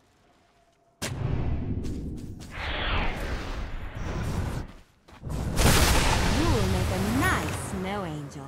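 Video game spells whoosh and crash loudly.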